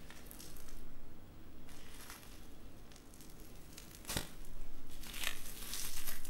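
Slime crackles and squishes as a hand presses down on it.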